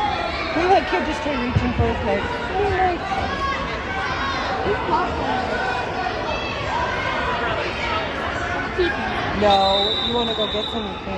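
A crowd of spectators chatters and shouts throughout an echoing gym.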